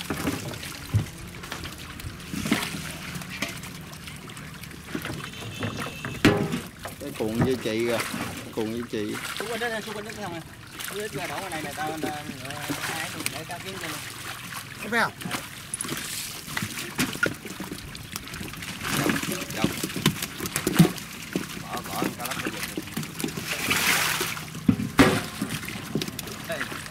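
Many fish splash and thrash in shallow water.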